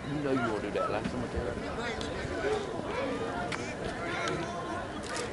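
Several men and women talk and call out across an open field outdoors.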